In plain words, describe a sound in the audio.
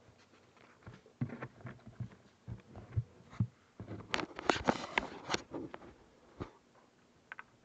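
A young man reads aloud calmly into a microphone.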